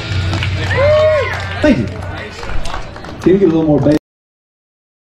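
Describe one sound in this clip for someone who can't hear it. An electric guitar bends notes in a sliding lead line.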